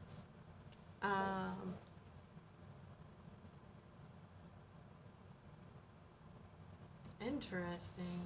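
A woman speaks briefly and calmly close by, with pauses.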